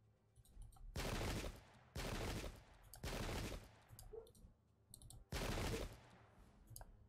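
Musket volleys crackle in loud bursts.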